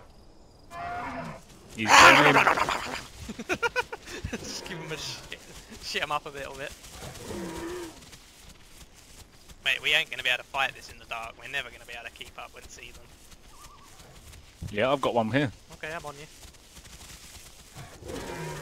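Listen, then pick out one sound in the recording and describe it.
An animal rustles through tall grass.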